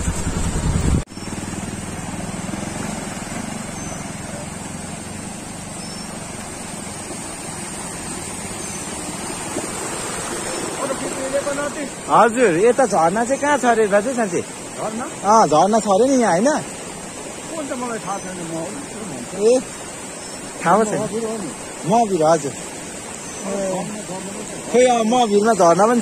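A stream burbles over rocks.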